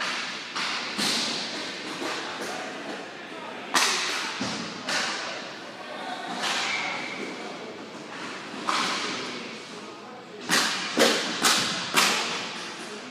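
Plastic skate wheels roll and scrape on a hard floor.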